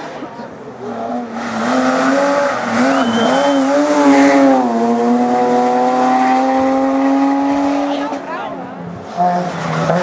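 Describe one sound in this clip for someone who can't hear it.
A rally saloon revs hard through the gears as it climbs past.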